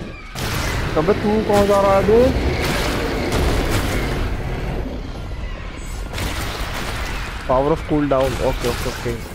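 A dragon lets out short shrill screeching cries.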